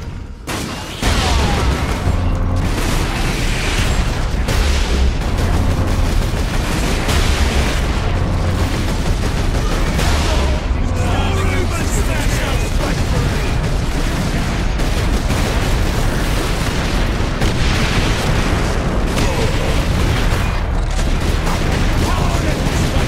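Heavy gunfire booms in rapid bursts.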